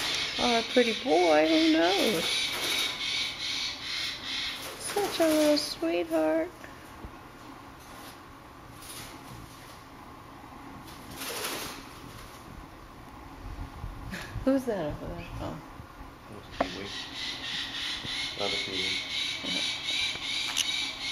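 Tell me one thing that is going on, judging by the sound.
Small parrots chirp and squawk close by.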